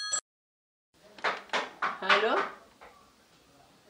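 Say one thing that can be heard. A middle-aged woman answers a telephone, speaking calmly up close.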